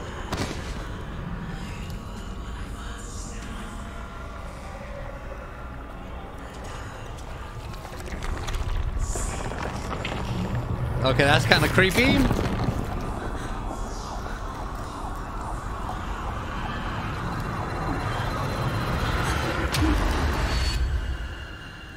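Thick liquid sloshes and splashes close by.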